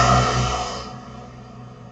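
A motorbike engine hums in the distance.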